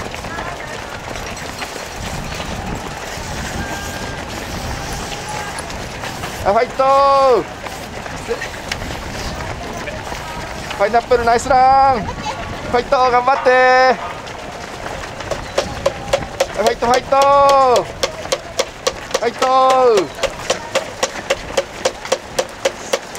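Many running shoes patter steadily on pavement.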